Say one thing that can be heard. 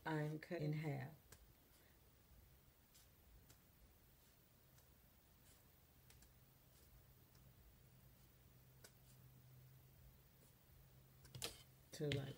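Scissors snip through a stiff trim.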